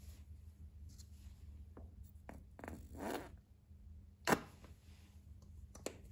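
A plastic cap is twisted off a bottle.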